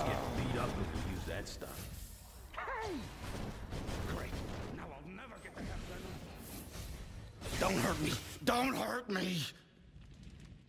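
Punches and kicks land with sharp thuds during a fight.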